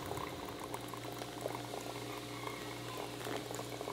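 Hot water pours into a coffee filter.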